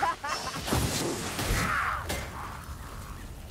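Blades slash and strike with heavy impacts.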